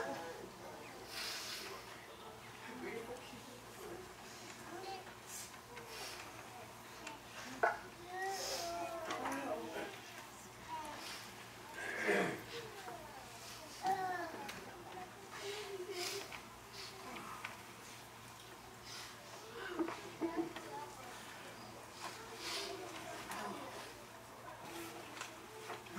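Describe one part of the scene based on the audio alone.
Men and women talk quietly among themselves in a large echoing hall.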